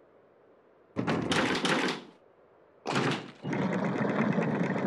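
A heavy metal mechanism grinds and clanks as it turns.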